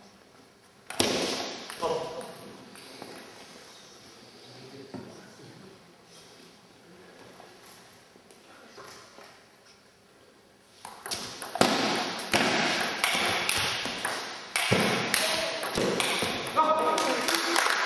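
A table tennis ball clicks sharply off paddles and the table in a large echoing hall.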